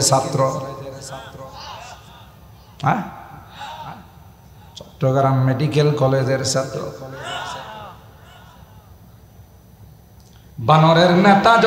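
An elderly man preaches forcefully into a microphone over a loudspeaker, in bursts with echoing pauses.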